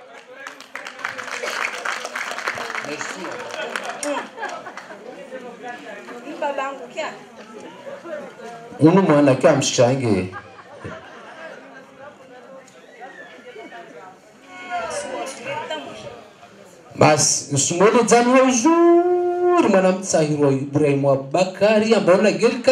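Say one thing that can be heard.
An elderly man sings into a microphone, heard through loudspeakers.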